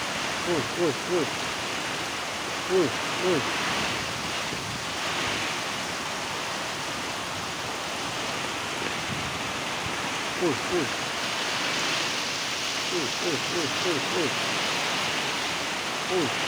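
Strong wind roars through the trees.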